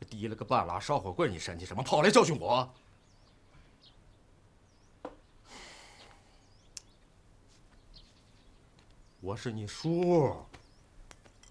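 A man speaks firmly and forcefully nearby.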